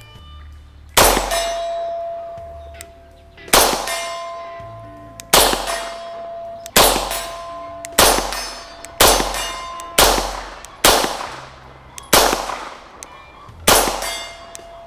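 A pistol fires loud single shots at a steady pace, echoing outdoors.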